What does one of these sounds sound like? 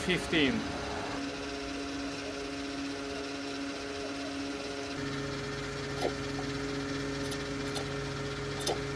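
A fuel pump hums steadily.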